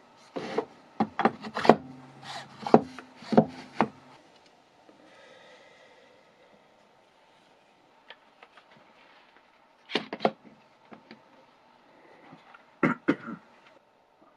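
A metal tool clanks against wood.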